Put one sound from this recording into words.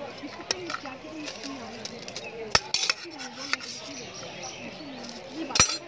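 A metal spoon scrapes and clinks against a steel pot.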